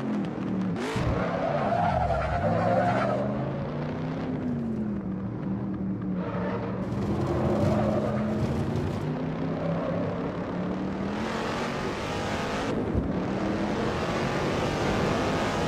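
A car engine roars and rises in pitch as the car accelerates.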